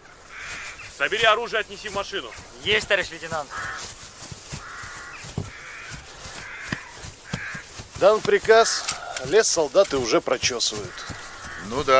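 A man speaks firmly and calmly outdoors.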